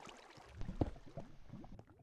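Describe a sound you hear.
Lava bubbles and pops.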